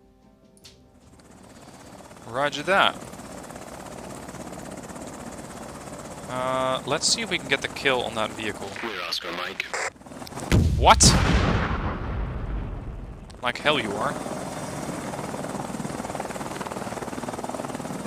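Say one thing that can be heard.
Helicopter rotors whir steadily.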